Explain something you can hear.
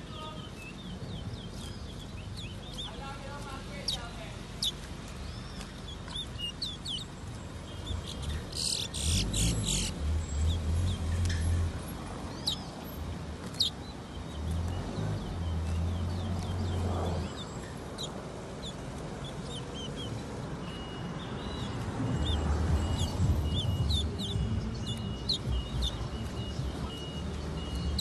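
Caged birds chirp and whistle close by.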